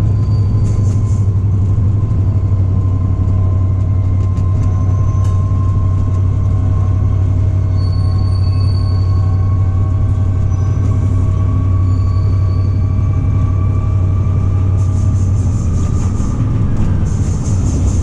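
Wheels squeal against the rails.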